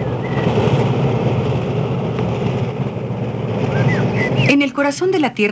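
Combine harvesters rumble steadily across a field.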